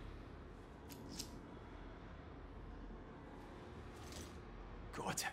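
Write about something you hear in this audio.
A key jingles as it is picked up.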